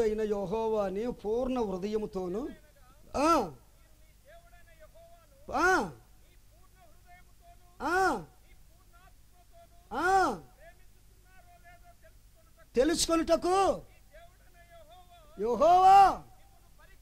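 A man sings loudly through a microphone and loudspeaker, in short long-held phrases with pauses between them.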